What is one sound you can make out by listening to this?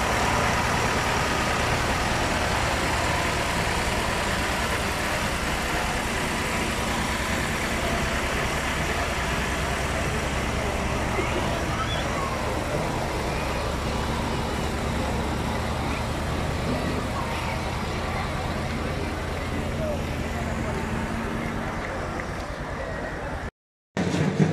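A vehicle engine rumbles steadily close by.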